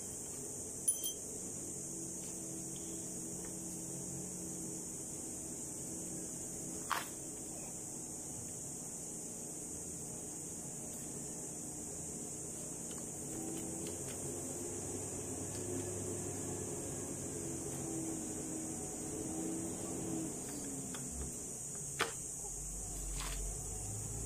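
Metal parts click and clank as a scooter wheel is handled.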